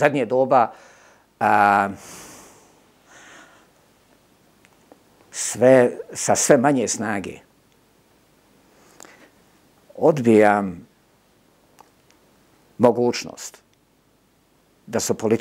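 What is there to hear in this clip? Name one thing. An elderly man speaks in short bursts, close to a microphone, with emphatic pauses.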